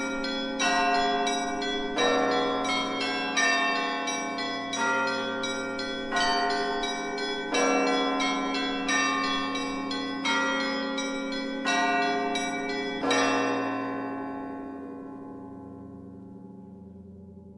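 Church bells ring in a rapid peal and then slowly fade away.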